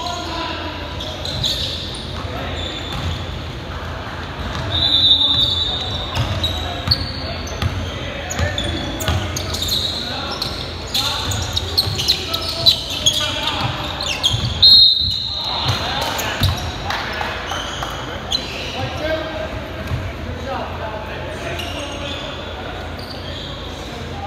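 Young men shout and call out to each other across an echoing gym.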